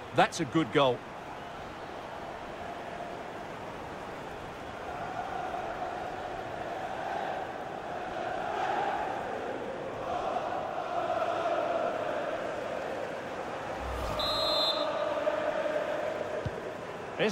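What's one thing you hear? A large stadium crowd cheers and roars in waves.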